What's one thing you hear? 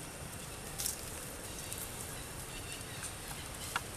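Dry leaves rustle and crunch under a monkey's steps.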